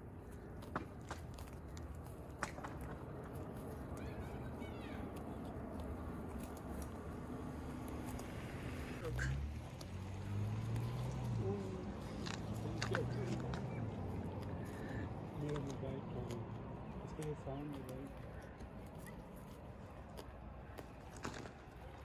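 Sheep tear and munch grass close by.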